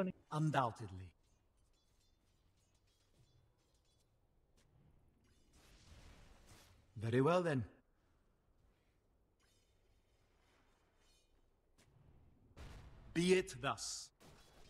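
Magic spell effects burst and whoosh in a fight.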